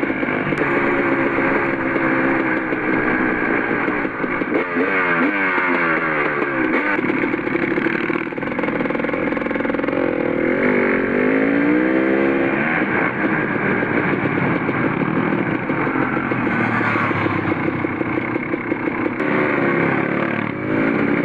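A motorcycle engine roars up close and rises and falls as it revs.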